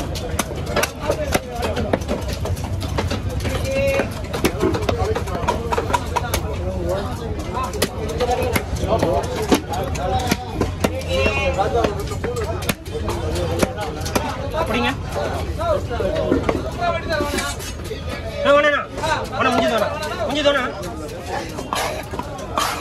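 A heavy knife chops down onto a wooden block with sharp thuds.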